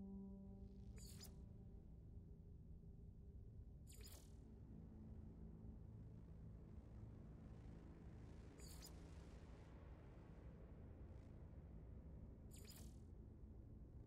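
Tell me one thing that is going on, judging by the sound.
A short whooshing menu sound plays several times.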